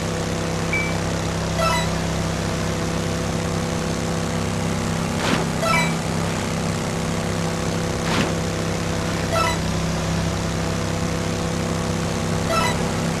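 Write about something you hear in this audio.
Water sprays and hisses behind a jet ski.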